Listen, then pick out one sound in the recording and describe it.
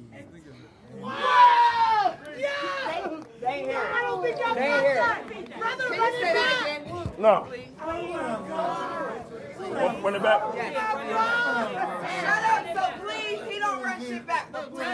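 A man raps loudly and forcefully.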